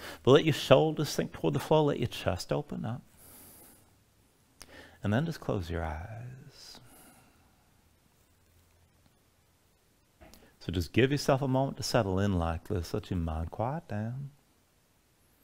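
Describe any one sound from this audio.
A man speaks calmly and slowly, close to the microphone, with long pauses.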